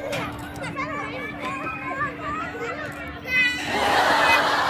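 Young children babble and chatter close by.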